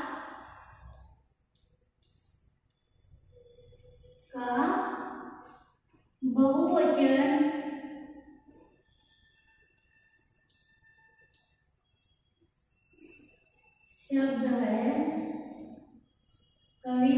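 A woman speaks nearby, in loud, drawn-out phrases with pauses between them.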